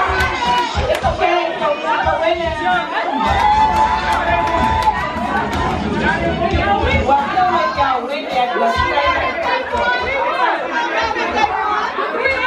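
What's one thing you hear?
A crowd of women cheers and shouts excitedly nearby.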